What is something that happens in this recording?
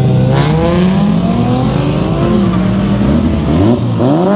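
Tyres screech on asphalt during a burnout.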